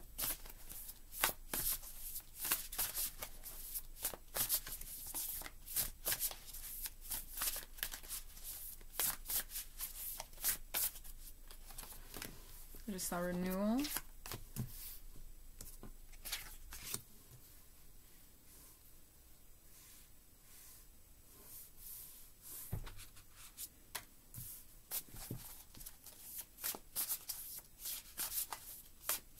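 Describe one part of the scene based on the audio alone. Playing cards riffle and flap as they are shuffled close by.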